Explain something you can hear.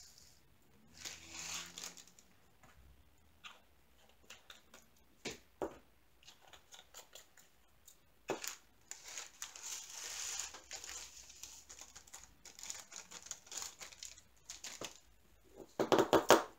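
Small plastic containers click and tap against each other.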